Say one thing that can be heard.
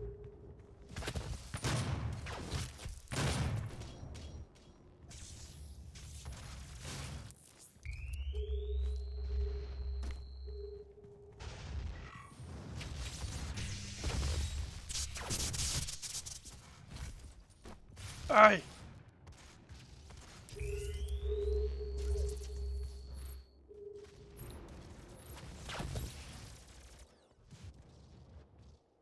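Guns fire in quick bursts with loud blasts.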